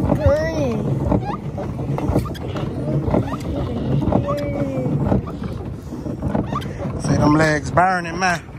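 A pedal boat's pedals knock and rattle as it moves across the water.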